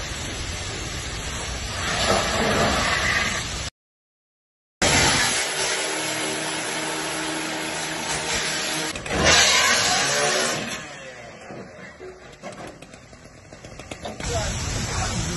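Water sprays hard from a fire hose.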